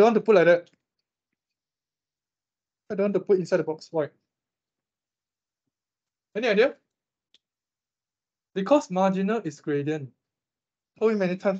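A young man speaks calmly in short bursts with pauses, heard through an online call.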